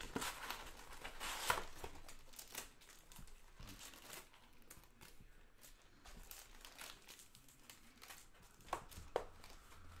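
Cardboard flaps scrape and click as a box is opened.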